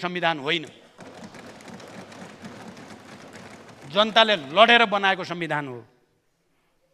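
An elderly man speaks slowly and firmly into a microphone in a large echoing hall.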